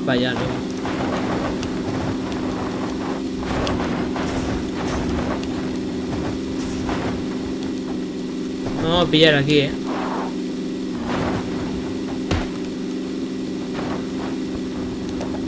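A car engine hums steadily as a car drives over rough ground.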